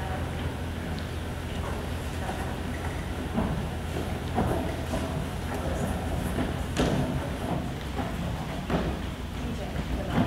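Children chatter in a large echoing hall.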